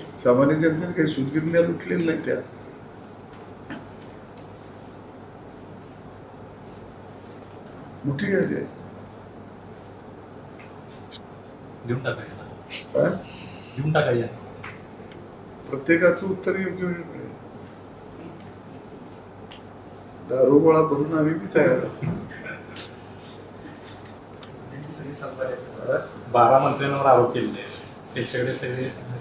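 A man speaks into a microphone in short bursts, with pauses between.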